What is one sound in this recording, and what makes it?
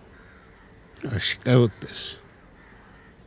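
A man asks a short question quietly, close by.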